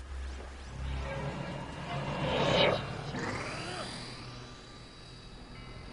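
Electric energy crackles and hisses.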